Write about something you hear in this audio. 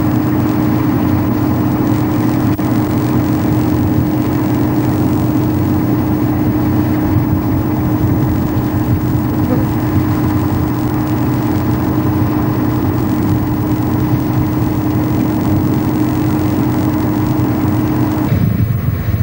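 An excavator's diesel engine drones steadily.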